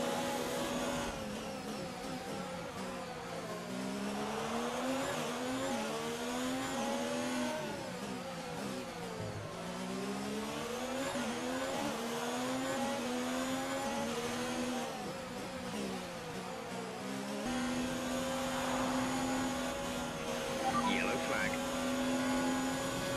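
A racing car engine whines loudly, rising and falling in pitch as it speeds up and slows down.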